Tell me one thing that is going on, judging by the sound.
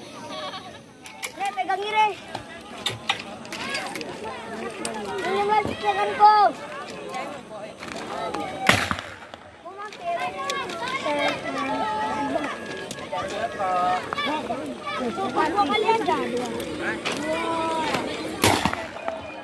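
Young boys talk and shout excitedly nearby, outdoors.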